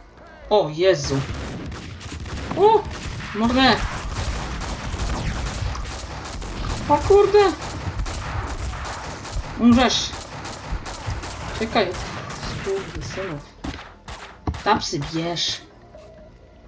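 Gunshots crack out in rapid bursts.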